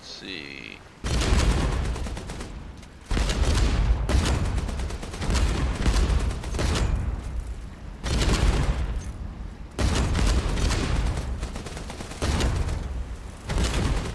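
Heavy guns fire in loud bursts, again and again.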